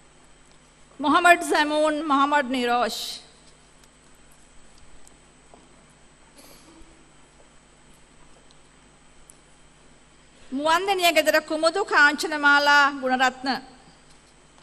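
A woman reads out through a microphone over loudspeakers in a large hall.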